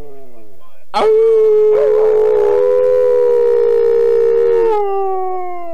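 A man howls loudly close by.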